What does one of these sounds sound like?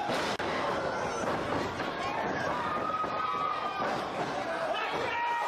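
Wrestlers' bodies thud on the ring mat.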